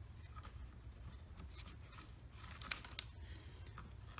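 Pencils clink softly in a box.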